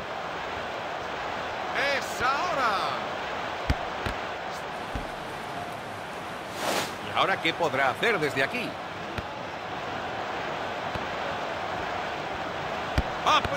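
A stadium crowd murmurs and roars steadily in the background.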